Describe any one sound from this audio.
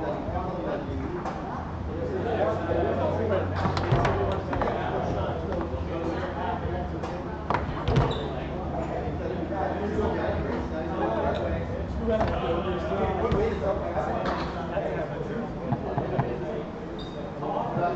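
Metal rods of a foosball table rattle and clack as they spin and slide.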